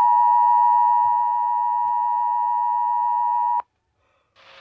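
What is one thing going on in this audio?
A steady, piercing electronic alert tone plays through a small speaker, then cuts off abruptly.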